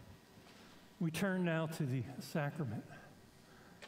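An elderly man speaks calmly over a microphone.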